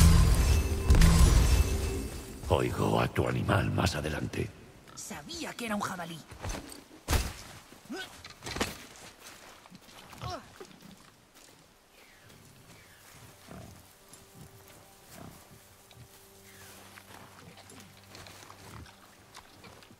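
Heavy footsteps crunch on gravel and snow.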